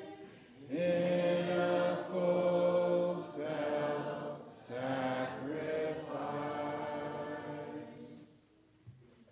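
A man sings a hymn through a microphone.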